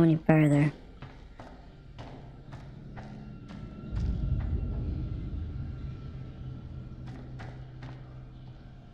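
Footsteps thud slowly on a hard floor in an echoing corridor.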